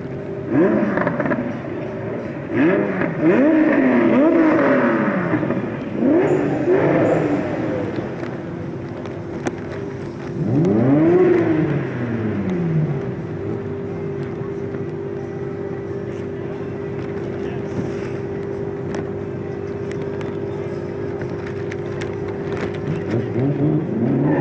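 Racing car engines rev hard and loud, rising and falling in pitch.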